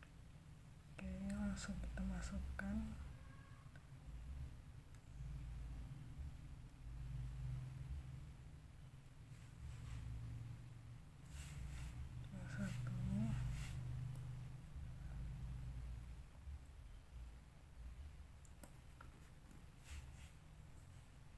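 Small plastic parts click and snap together.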